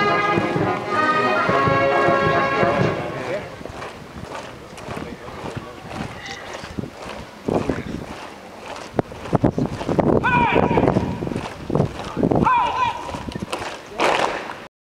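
Many feet march in step on pavement outdoors.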